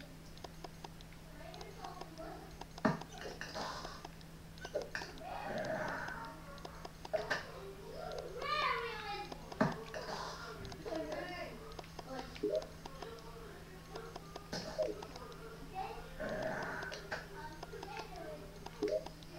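A handheld game console plays game sound effects.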